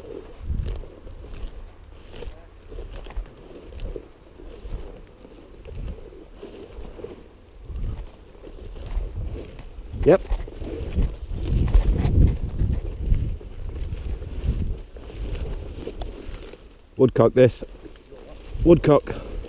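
Dry grass rustles in the wind.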